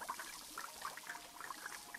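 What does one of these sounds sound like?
Cartoon toppings patter softly onto a plate of fries.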